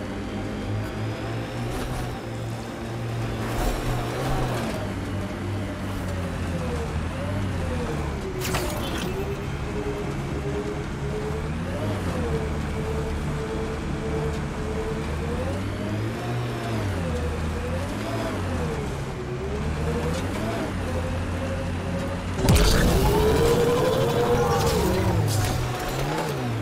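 A vehicle engine hums and whines, rising and falling in pitch as it drives over rough ground.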